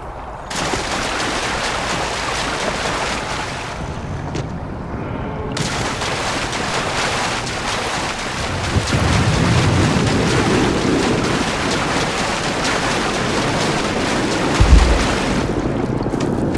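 Feet splash quickly through shallow water.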